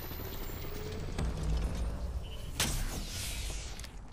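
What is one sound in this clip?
A device charges up with a rising electronic whir.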